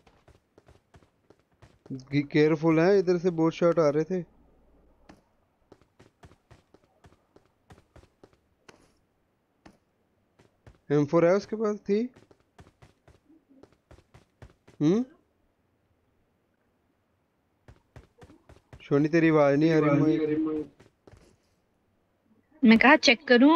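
Footsteps patter quickly on a hard floor.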